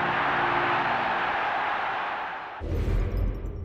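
A large stadium crowd cheers loudly.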